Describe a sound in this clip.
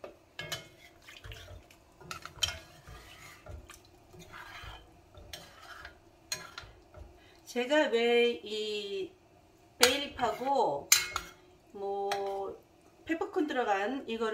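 A metal spoon knocks and scrapes against a pot.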